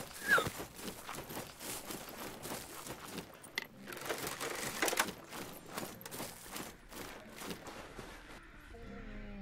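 Metal weapons swing and clash in quick bursts.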